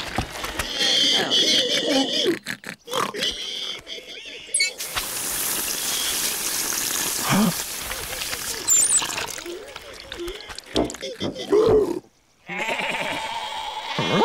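Cartoon pigs cheer and laugh excitedly.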